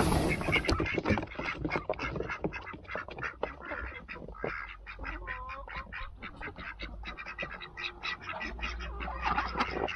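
Ducks quack and chatter close by.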